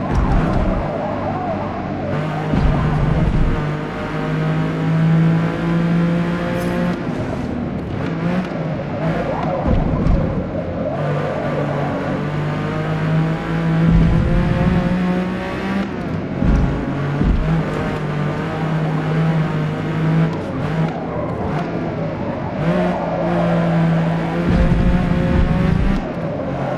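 A racing car engine roars loudly, rising and falling in pitch as it revs up and shifts gears.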